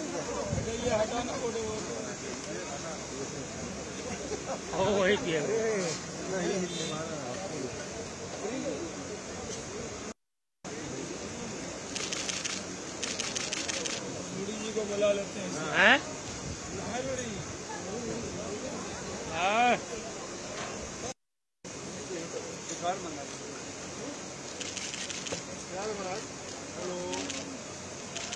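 A group of adults chatter and laugh nearby.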